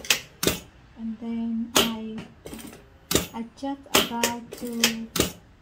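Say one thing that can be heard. A sewing machine whirs in short bursts.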